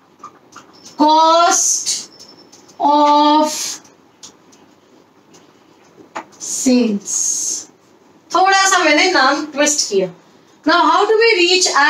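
A young woman speaks clearly and calmly, close by.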